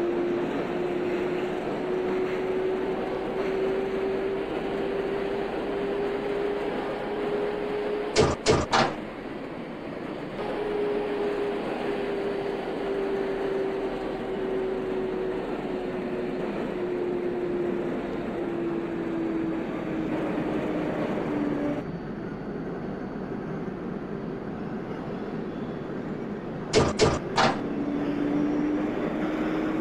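A train's electric motor whines, its pitch slowly rising and then falling.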